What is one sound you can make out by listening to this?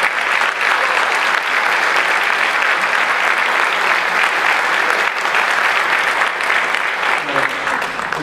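A large audience applauds steadily in a big echoing hall.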